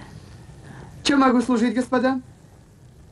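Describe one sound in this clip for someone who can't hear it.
A middle-aged man speaks loudly and firmly.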